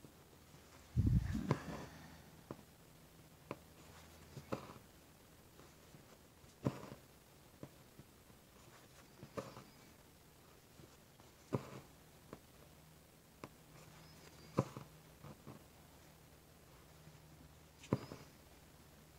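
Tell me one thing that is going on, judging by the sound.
Thread is pulled through fabric with a soft swish.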